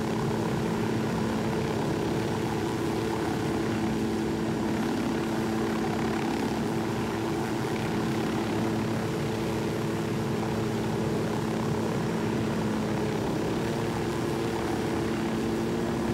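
A helicopter's rotor and engine drone steadily close by.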